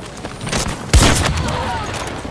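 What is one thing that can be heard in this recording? A rifle fires a loud, sharp burst up close.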